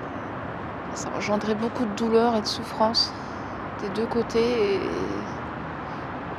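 A woman speaks softly close by.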